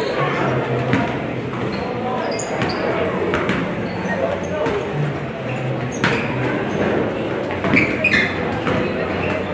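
A crowd of young women chatters in the background.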